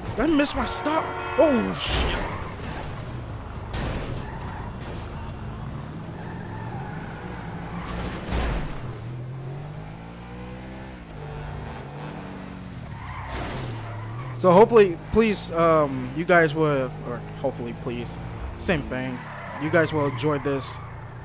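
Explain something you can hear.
A sports car engine hums and revs.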